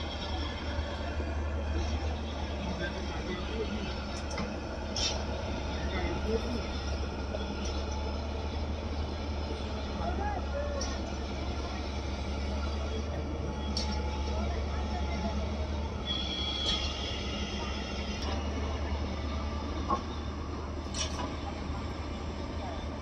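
Rocks clatter and knock as an excavator digs.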